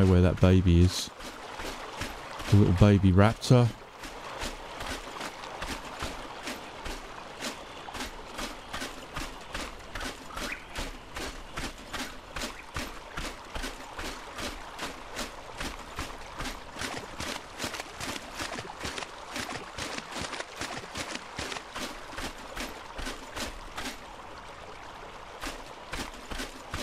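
Footsteps crunch steadily on sand.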